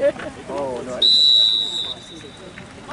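A referee blows a sharp whistle outdoors.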